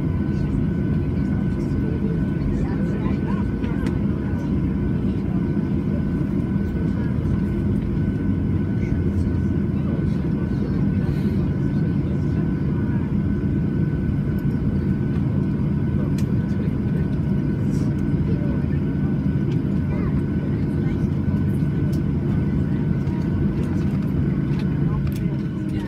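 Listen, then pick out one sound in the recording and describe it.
Jet engines hum steadily and loudly.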